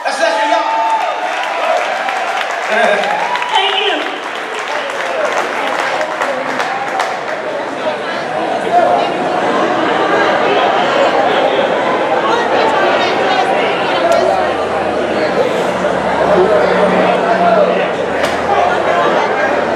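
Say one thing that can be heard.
A drummer plays a drum kit.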